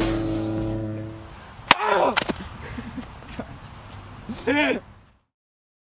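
Young men shout and laugh outdoors.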